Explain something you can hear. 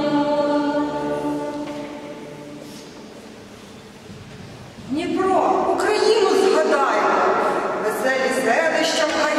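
A women's choir sings in close harmony, echoing in a large reverberant hall.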